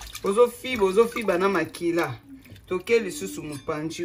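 Water sloshes in a basin.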